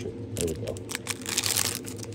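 A foil wrapper crinkles and tears as hands rip it open.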